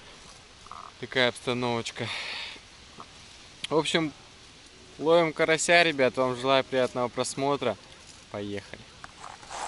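A young man talks up close, calmly.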